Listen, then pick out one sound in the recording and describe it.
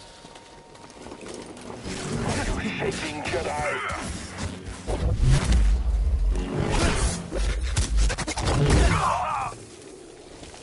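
Lightsabers hum and clash with sharp crackling hits.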